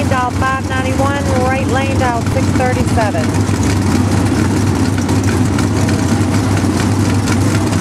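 Two race car engines rumble loudly, idling and revving.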